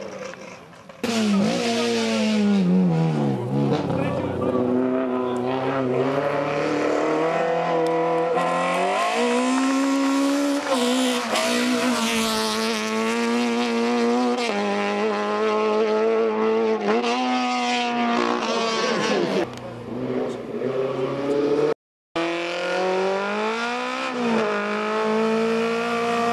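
A racing car engine revs hard, roars past close by and fades away.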